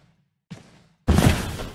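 A heavy blow strikes with a loud crash.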